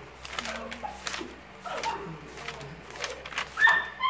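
Notebook pages rustle as they are flipped.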